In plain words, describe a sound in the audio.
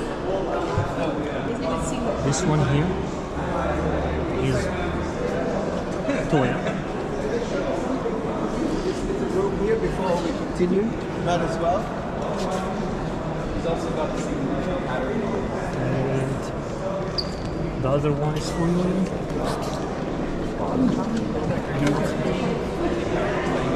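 A crowd of men and women chatter nearby in a large echoing hall.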